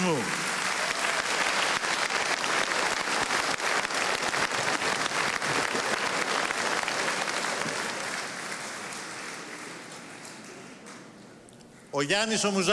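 A large crowd applauds and cheers loudly in a big hall, then the applause fades.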